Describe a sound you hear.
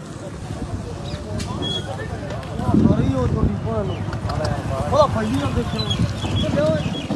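Several men talk with animation nearby, outdoors.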